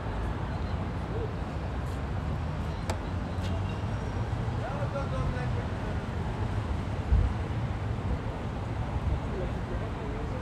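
Men and women chat quietly nearby outdoors.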